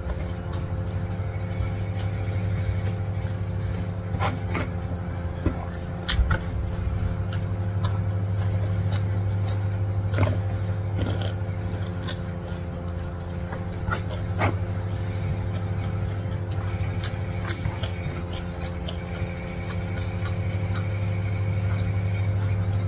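Crispy fried food crackles and crunches as fingers tear it apart close to a microphone.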